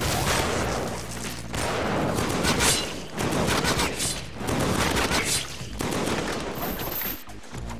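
A game energy blast crackles and booms.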